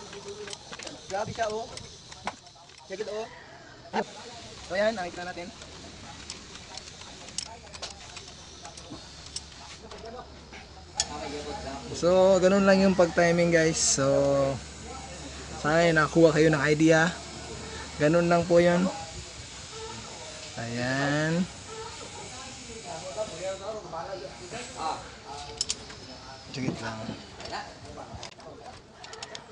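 A wrench clinks and scrapes against metal parts.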